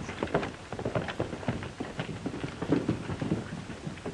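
Horse hooves clop on a dirt street.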